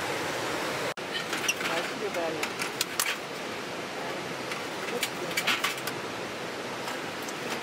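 Metal parts of a folding grill clink and rattle as they are set up.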